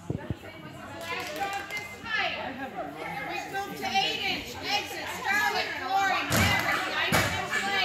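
A handler calls out commands to a dog with animation in a large echoing hall.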